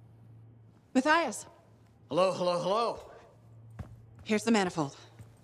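A man speaks calmly and cheerfully, close by.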